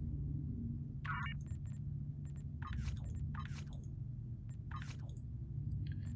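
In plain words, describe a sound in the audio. Short electronic chirps sound as a game menu opens.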